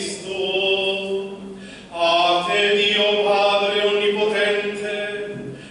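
A man chants in a slow, steady voice through a loudspeaker in a large echoing hall.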